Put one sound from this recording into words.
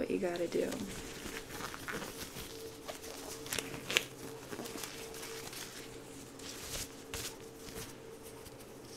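Rubber gloves crinkle and snap as they are pulled and handled.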